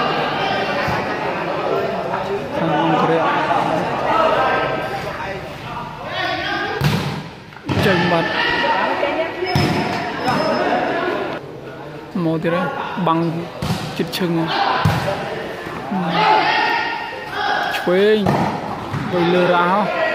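Men talk and call out loudly in a large echoing hall.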